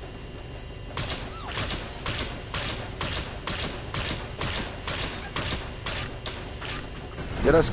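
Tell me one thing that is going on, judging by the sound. An electric beam zaps in quick, even pulses.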